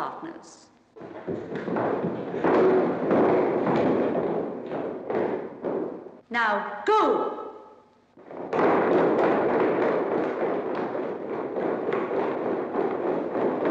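Feet shuffle and tap on a hard floor as a group dances.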